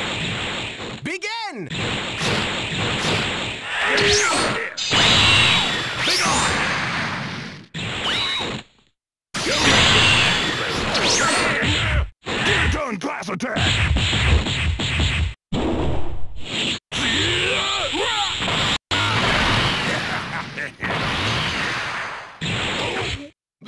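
Fast whooshing rushes of flight sweep past.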